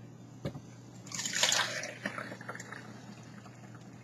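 Thick pulp slides and plops into a strainer.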